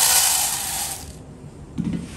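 Rice pours and patters into a plastic container.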